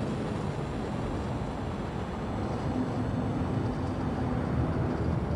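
A spaceship engine hums with a low, steady rumble.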